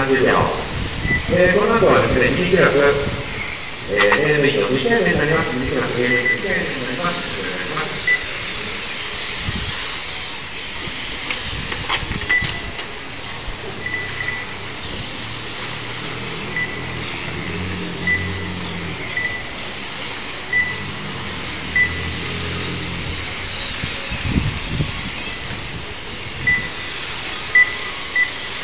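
Small electric motors whine at high pitch, rising and falling again and again.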